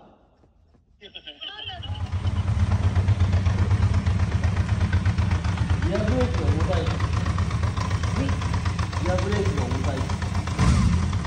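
A motorcycle engine starts up and idles with a steady, throaty rumble.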